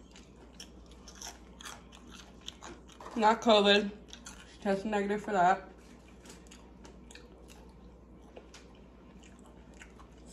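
A woman chews crunchy fries close to a microphone.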